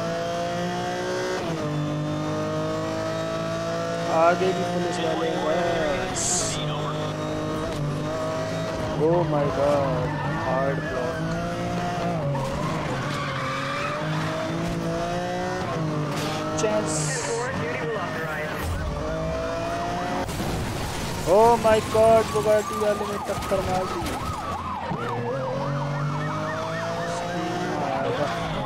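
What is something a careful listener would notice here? A sports car engine roars at high speed, rising and falling as gears shift.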